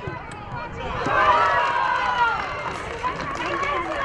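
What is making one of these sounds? A small crowd cheers and shouts outdoors.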